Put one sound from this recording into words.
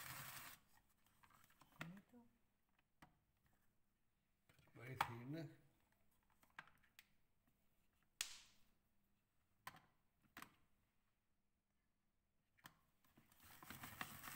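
A plastic grater clicks and knocks.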